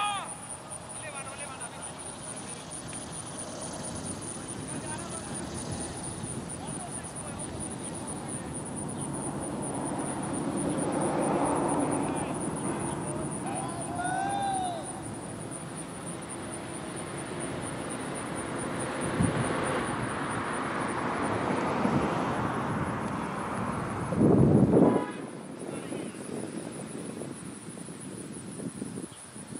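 Wind gusts across an open field outdoors.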